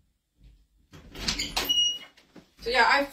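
A door opens nearby.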